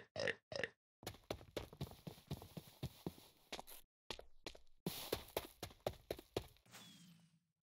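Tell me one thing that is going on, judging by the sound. Footsteps crunch on gravel and grass.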